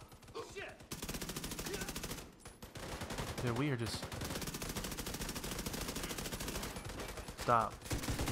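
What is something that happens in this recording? Automatic rifles fire in rapid, rattling bursts.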